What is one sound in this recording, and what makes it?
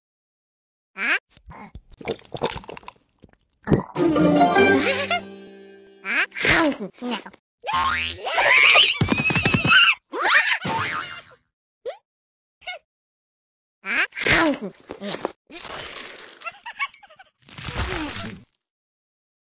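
A cartoon cat makes silly chewing and gulping noises.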